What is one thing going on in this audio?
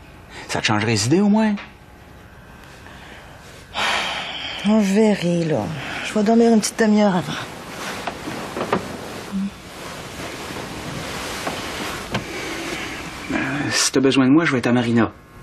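A middle-aged man speaks softly nearby.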